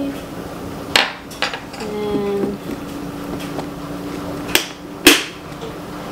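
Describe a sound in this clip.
A plastic lid snaps shut with a click.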